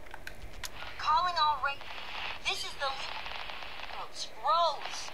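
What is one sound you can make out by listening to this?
A radio starts playing faintly.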